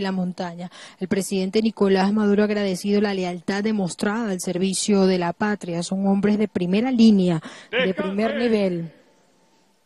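A man speaks loudly through a loudspeaker, echoing outdoors.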